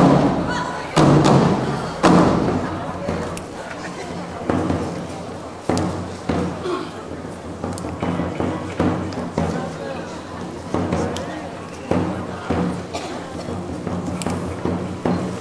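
Big drums are struck with single heavy, booming beats.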